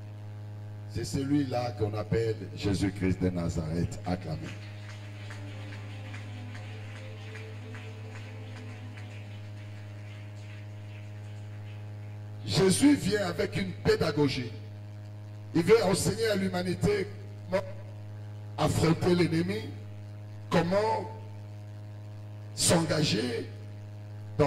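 An elderly man speaks slowly with pauses into a microphone, heard through a loudspeaker.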